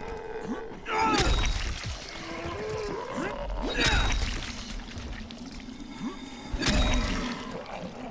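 Heavy blows thud into bodies.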